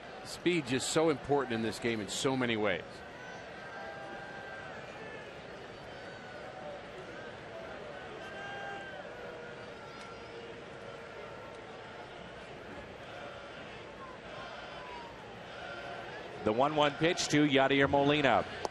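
A large crowd murmurs steadily in an open outdoor space.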